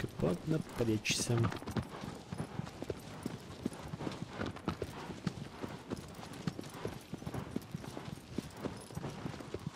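Horse hooves gallop rapidly over grass.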